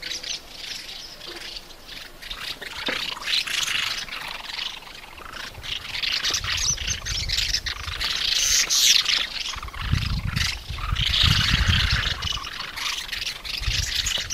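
A small bird twitters with rapid, chattering calls.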